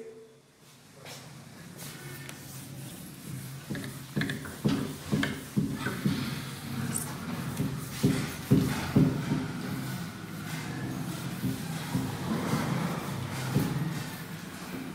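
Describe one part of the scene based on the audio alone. A duster rubs and scrubs across a board.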